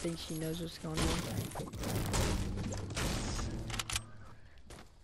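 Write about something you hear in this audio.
A pickaxe strikes a wooden wall.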